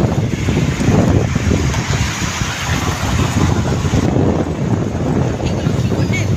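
Wind rumbles loudly past a moving vehicle.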